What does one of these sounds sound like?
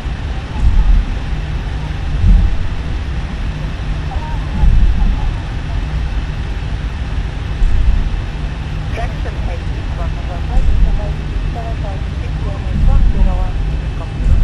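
A jet engine hums low and steady.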